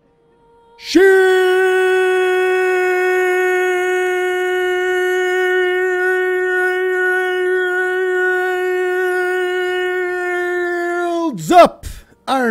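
A man sings one long, loud note into a microphone.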